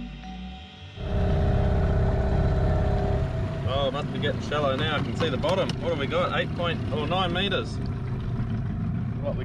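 An outboard motor drones steadily close by.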